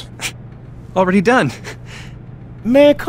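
A second man answers briefly.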